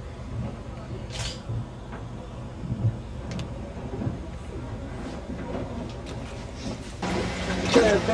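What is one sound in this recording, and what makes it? A boat engine rumbles low and steady.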